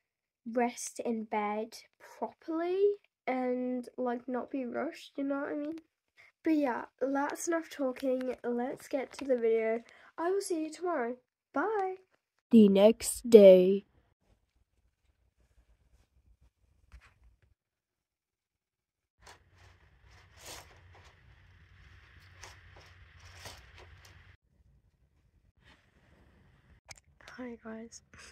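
A young girl talks with animation, close to the microphone.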